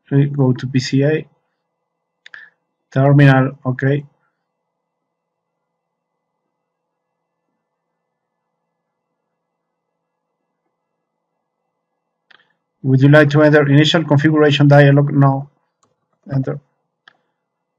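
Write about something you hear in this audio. A man speaks calmly into a microphone, explaining in short bursts.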